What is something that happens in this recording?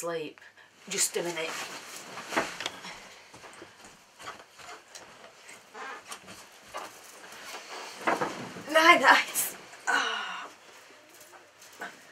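Bedding rustles as a woman moves on a bed.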